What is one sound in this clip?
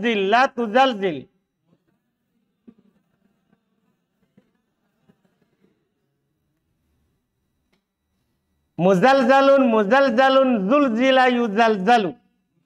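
A middle-aged man chants in a melodic voice, reading aloud close to a microphone.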